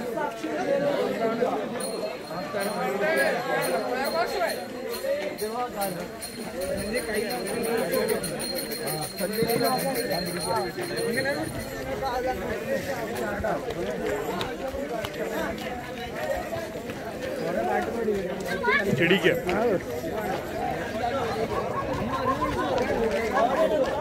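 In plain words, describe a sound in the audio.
A group of young men chatter and call out as they walk outdoors.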